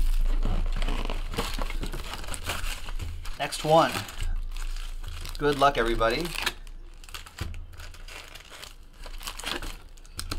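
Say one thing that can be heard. Cardboard rustles and scrapes as a box is opened.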